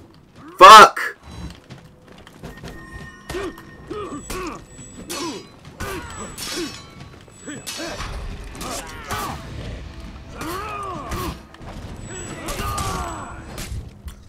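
Steel swords clash and strike in close combat.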